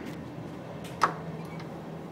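A door button clicks sharply as it is pressed.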